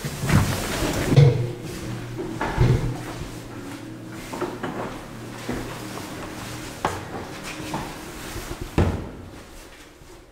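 Elevator doors slide along with a rumble.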